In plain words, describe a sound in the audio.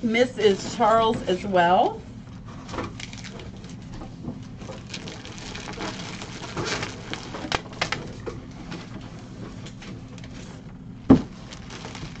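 Cardboard boxes scrape and thump.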